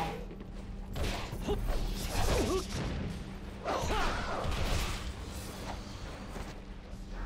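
Blades slash and clang in a fast fight.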